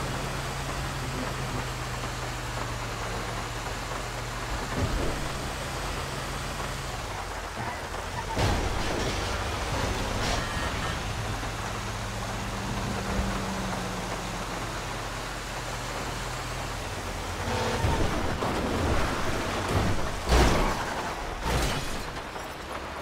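A heavy truck engine hums steadily and shifts in pitch as it drives.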